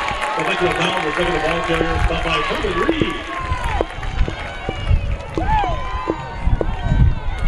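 Young men shout on an outdoor field.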